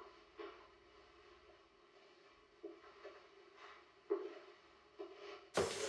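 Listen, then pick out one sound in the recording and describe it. A woman's footsteps tread softly down stairs.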